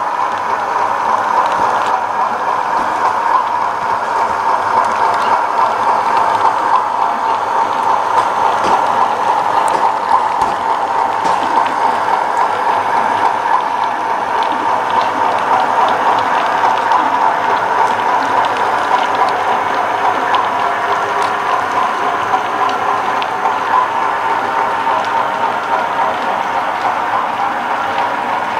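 Model train wheels click softly over rail joints.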